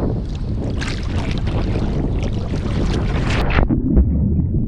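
Water splashes and laps at the surface close by.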